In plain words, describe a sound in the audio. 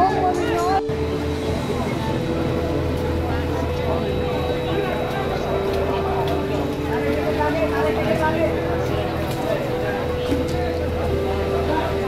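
A crowd of men shouts outdoors.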